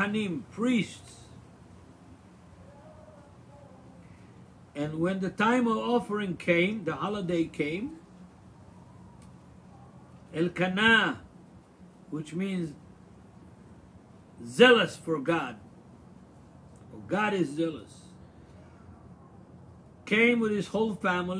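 An elderly man speaks calmly and haltingly into a microphone, close by.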